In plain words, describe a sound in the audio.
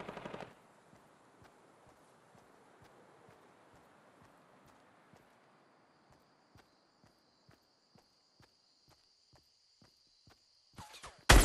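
Footsteps pad over grass.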